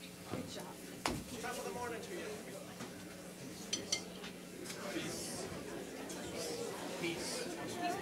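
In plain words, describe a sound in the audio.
A crowd of people chatters and murmurs in a large room.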